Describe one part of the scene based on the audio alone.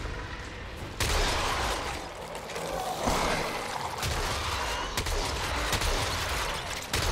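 A blade swishes and strikes in a fight.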